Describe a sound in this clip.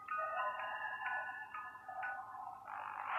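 A music box plays a tinkling tune.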